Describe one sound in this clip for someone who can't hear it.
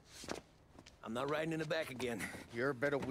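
A man speaks firmly in reply.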